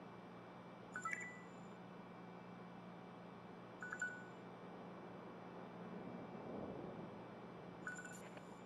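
A short electronic chime sounds as each text message arrives.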